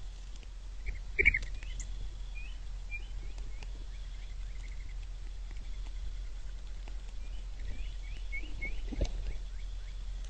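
Small birds chirp and call outdoors.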